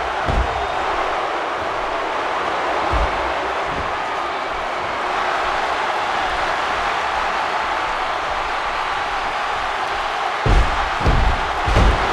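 A large crowd roars steadily.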